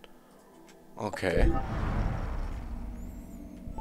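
A soft whoosh sweeps in.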